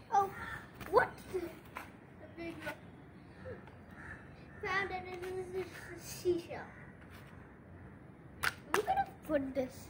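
A plastic shovel scrapes and digs into soft soil.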